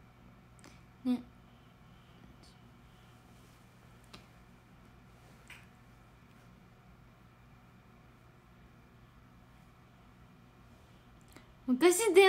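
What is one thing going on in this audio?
A young woman speaks softly, close to the microphone.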